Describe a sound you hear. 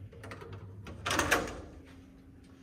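A metal door latch clicks as a door is pushed open.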